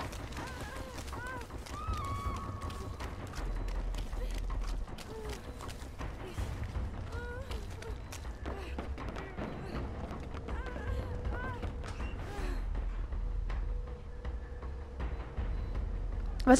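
Footsteps run quickly over wooden boards.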